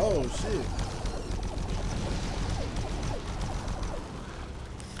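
A futuristic energy gun fires rapid crackling bursts.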